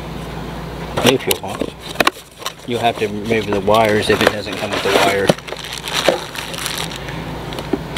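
A cardboard box is opened and handled.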